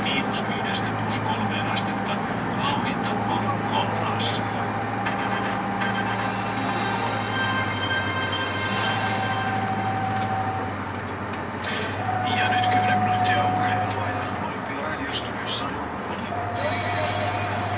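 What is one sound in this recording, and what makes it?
A bus engine hums steadily from inside while driving.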